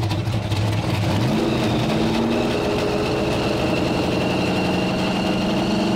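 A powerful car engine rumbles loudly with a fast, lumpy beat.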